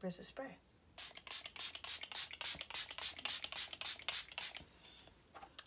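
A spray bottle hisses in quick bursts.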